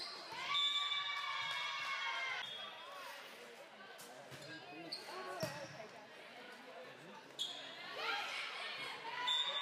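Girls shout and call out loudly in a large echoing hall.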